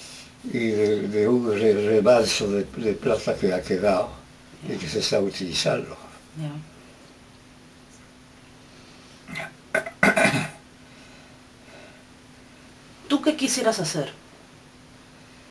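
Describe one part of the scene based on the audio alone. An elderly man speaks slowly and calmly, close by.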